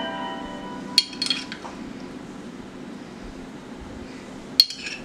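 A metal utensil clinks against a ceramic plate.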